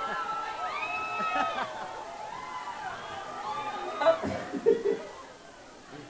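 A large crowd cheers and screams outdoors.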